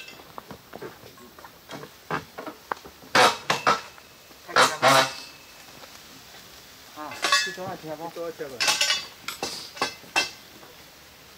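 Metal bars strike and tamp gravel with sharp clinks.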